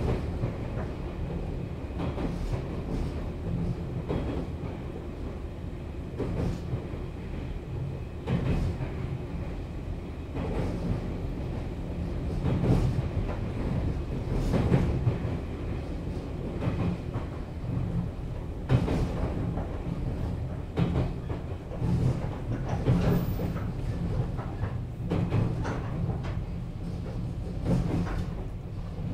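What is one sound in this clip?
An electric train motor hums and rumbles steadily.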